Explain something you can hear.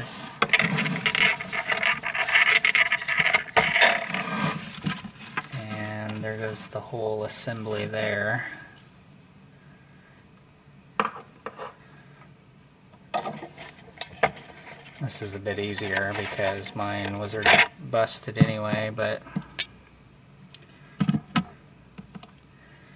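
Plastic parts click and knock as they are handled and pressed into place.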